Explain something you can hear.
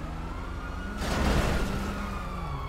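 Cars crash together with a loud thud.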